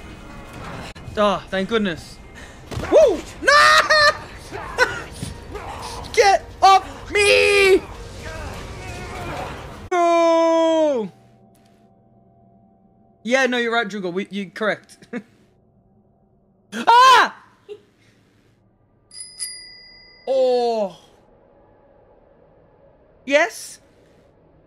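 A man talks and exclaims excitedly into a close microphone.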